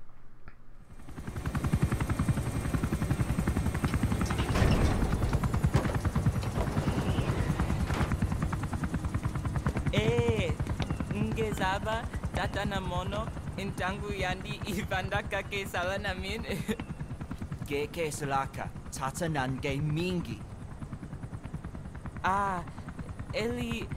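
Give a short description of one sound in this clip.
A helicopter's rotor thumps rapidly and steadily nearby.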